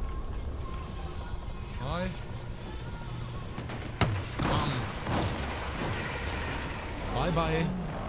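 A helicopter's rotor thumps nearby.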